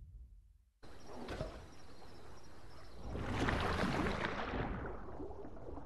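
Water splashes and bubbles as a creature plunges in.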